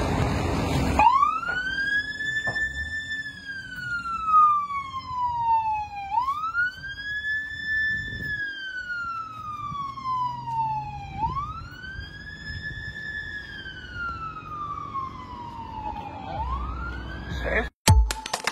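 An ambulance siren wails, rising and falling slowly as the ambulance drives away.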